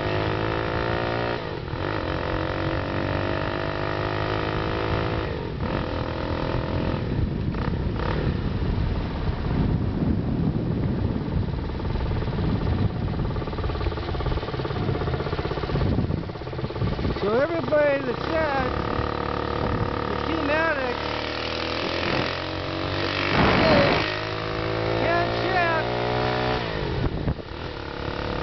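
Wind rushes steadily past while riding outdoors.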